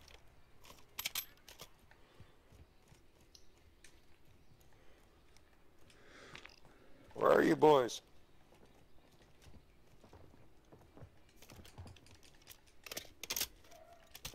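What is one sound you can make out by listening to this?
A rifle clatters as it is handled.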